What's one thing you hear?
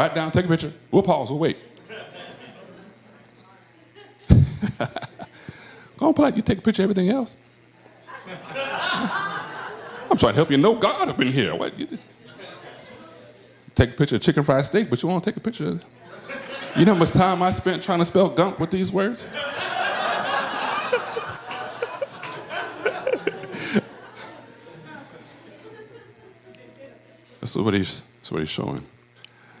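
A man speaks calmly through a microphone, pausing between phrases.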